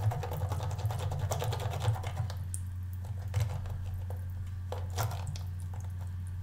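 A brush scrubs against a rubbery pad with soft, quick rubbing strokes.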